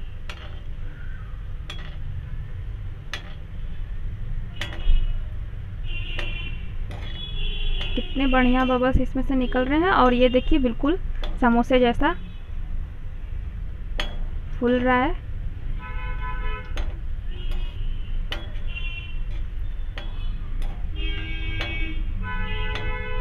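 Rolls of food sizzle and bubble as they deep-fry in hot oil in a metal wok.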